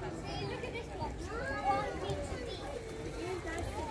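A crowd of adults and children chatter nearby outdoors.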